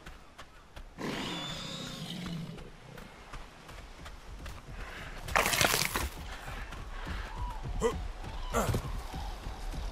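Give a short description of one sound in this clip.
A large creature grunts and growls nearby.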